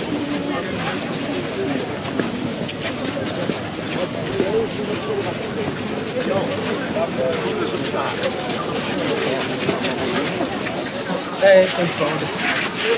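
Footsteps shuffle on wet paving stones.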